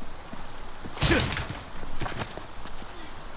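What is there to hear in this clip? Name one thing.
A wooden crate smashes apart.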